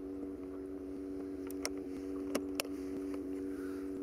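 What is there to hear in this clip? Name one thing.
Plastic clicks and rattles as a tackle box is handled.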